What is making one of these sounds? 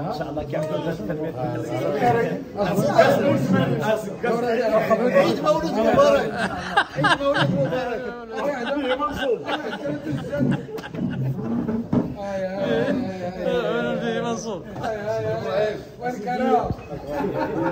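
Several men talk and laugh excitedly close by.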